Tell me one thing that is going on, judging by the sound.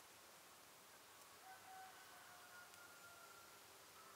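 Oil pours from a bottle into a pan.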